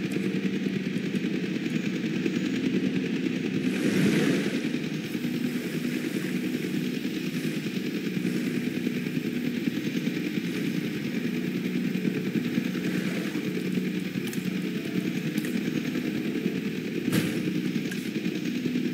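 A helicopter's rotor whirs steadily overhead.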